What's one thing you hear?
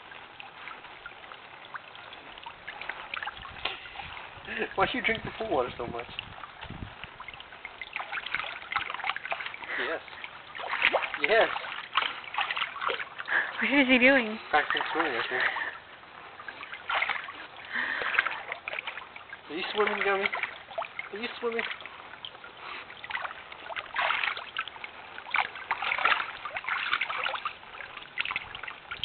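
Water splashes as a dog paddles about in a shallow pool.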